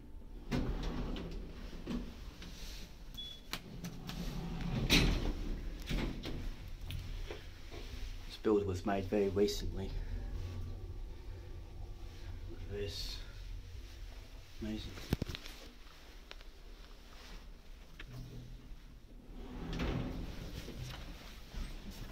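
An elevator hums low as it moves.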